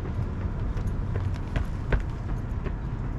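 Quick footsteps slap on pavement as a runner passes close by.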